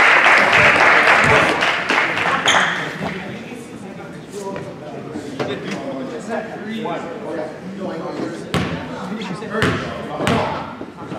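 Young men talk and call out across the court.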